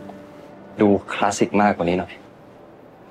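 A young man speaks calmly and briefly, close by.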